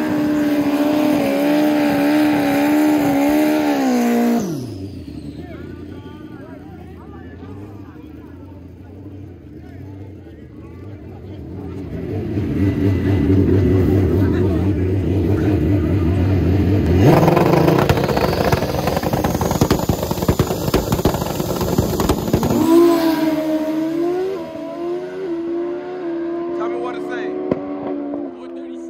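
A motorcycle engine revs loudly and roars close by.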